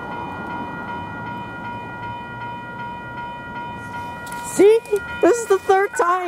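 Train wheels squeal with a steady high whine.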